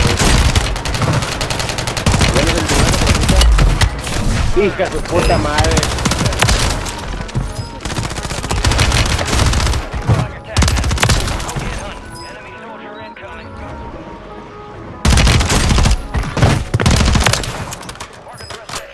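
Rapid gunfire bursts loudly in quick volleys.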